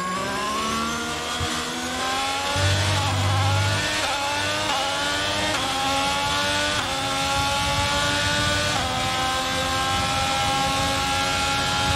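A racing car engine screams at high revs, rising in pitch and dropping briefly with each gear change.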